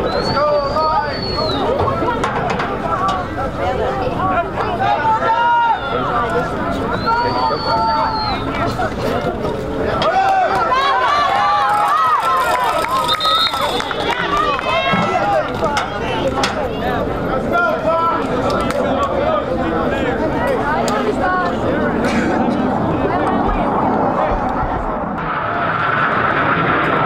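Teenage boys shout and chatter outdoors nearby.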